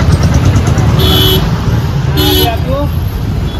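Horns honk on the street.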